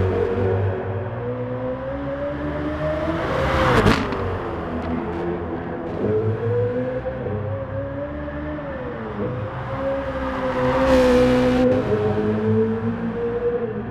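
A racing car engine roars at high revs, rising and dropping as the car shifts gears.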